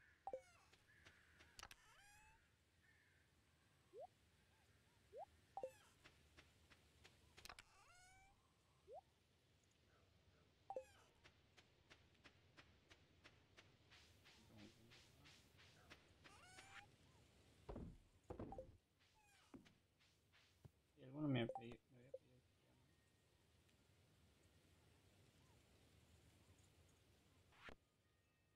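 Short electronic blips and chirps sound as game menus open and close.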